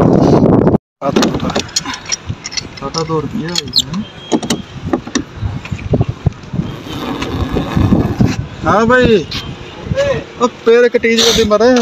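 A metal pipe wrench clanks and grinds against a threaded metal fitting.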